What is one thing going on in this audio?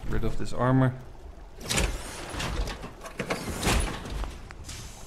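Heavy metal armour clanks and hisses open.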